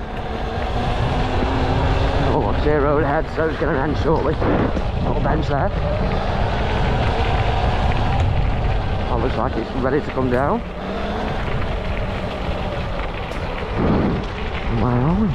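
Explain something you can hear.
Footsteps crunch on dry leaves along a path.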